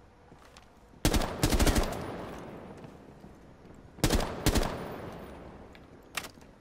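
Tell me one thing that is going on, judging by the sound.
Rifle shots fire in short bursts and echo away.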